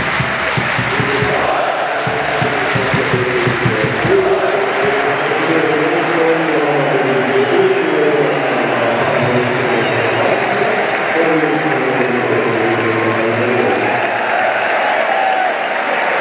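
A large crowd sings and chants loudly in unison in a big stadium.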